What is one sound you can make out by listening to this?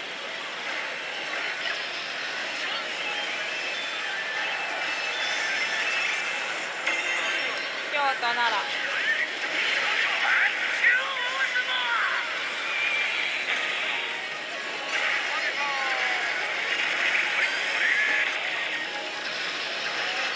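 A slot machine plays loud, busy electronic music and sound effects.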